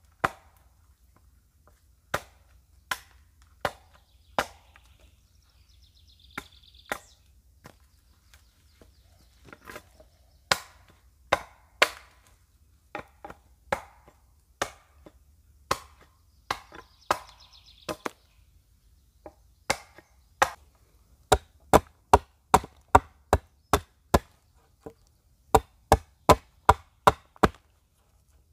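A hatchet chops into wood with sharp knocks.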